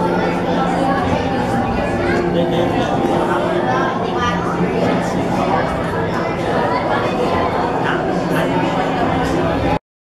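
A crowd of people chatters nearby in an echoing room.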